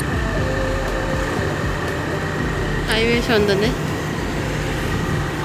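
A car's engine hums and its tyres rumble on the road, heard from inside.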